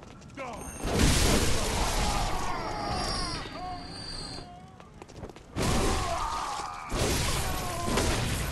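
Creatures snarl and shriek.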